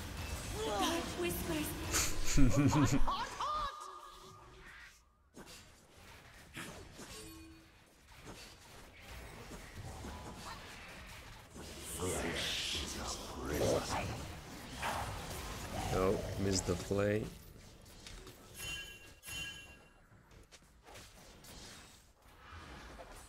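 Fantasy game spell effects whoosh and burst during a fight.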